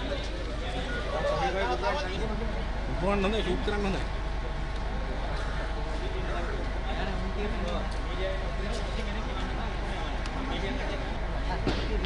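A crowd of men talk and murmur nearby outdoors.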